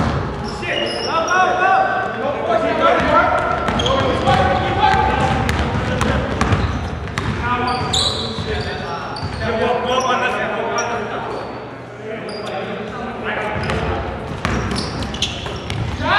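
A basketball bounces with hollow thuds on the floor.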